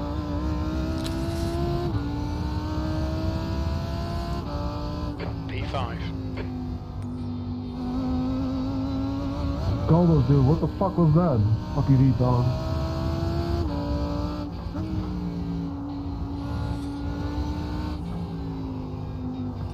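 A race car engine drones steadily, rising and dropping in pitch through gear changes.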